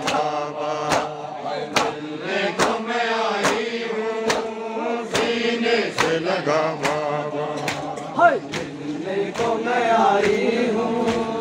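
A crowd of men beats their chests in a steady rhythm, with loud slaps.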